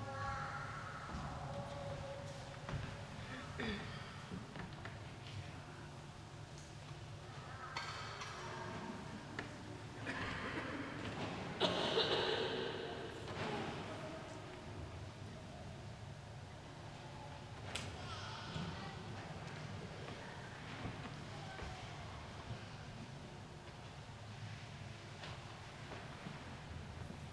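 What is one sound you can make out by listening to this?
An elderly man speaks quietly into a microphone in an echoing hall.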